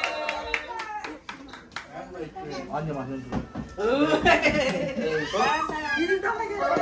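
Several women talk and laugh excitedly close by.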